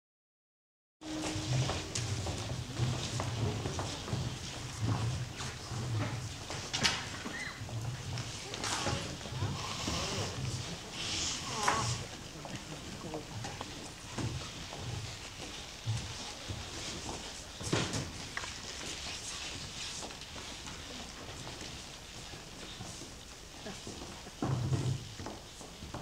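A crowd of young people chatter and move about in a large hall.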